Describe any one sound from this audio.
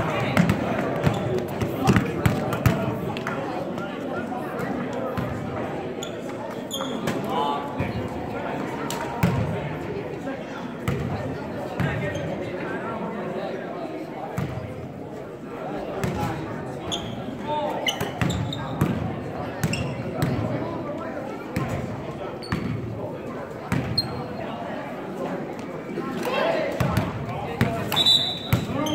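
A crowd of spectators murmurs and chatters in the echoing hall.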